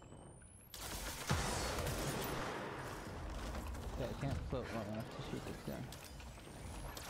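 Debris clatters and scatters across the ground.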